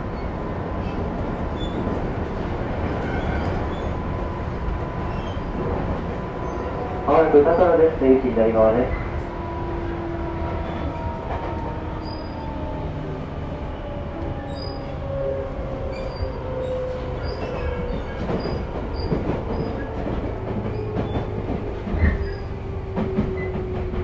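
An electric train motor whines with a slowly falling pitch.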